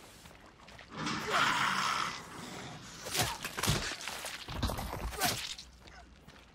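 Heavy blows thud and smack in a close fight.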